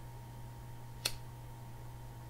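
A lighter clicks once, sharp and close.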